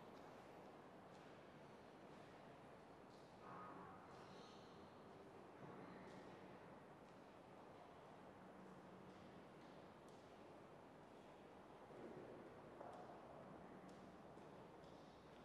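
An organ plays soft, sustained notes that echo through a large hall.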